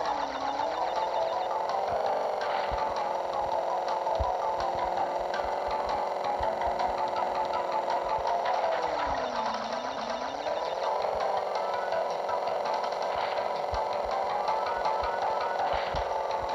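A small engine drones steadily, its pitch dipping and rising now and then.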